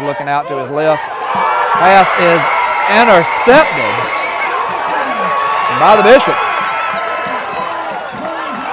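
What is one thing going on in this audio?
A crowd of players and fans cheers and shouts loudly.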